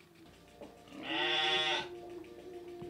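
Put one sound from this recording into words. A sheep bleats loudly.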